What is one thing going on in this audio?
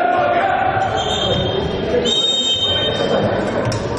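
A referee's whistle blows twice.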